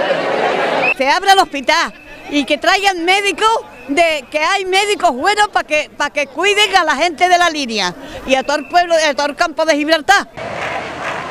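An elderly woman speaks emphatically into a microphone, close by.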